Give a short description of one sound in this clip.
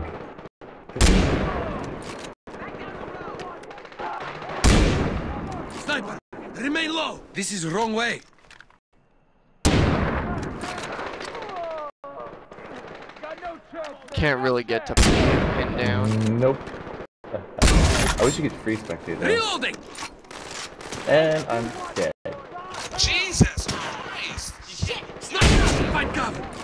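Rifle shots boom out one at a time, each with a short echo.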